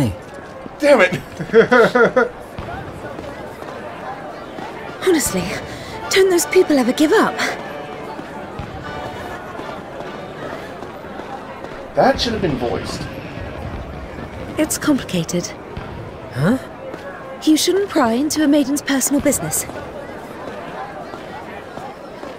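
Footsteps walk on cobblestones.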